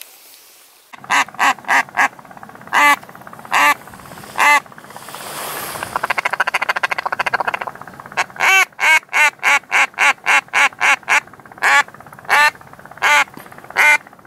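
A duck call blows loud, sharp quacks in short bursts and rapid runs.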